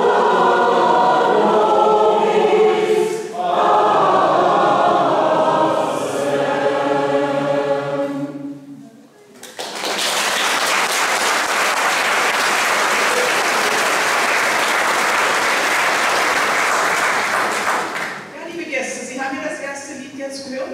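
A choir of older women sings together in a large hall.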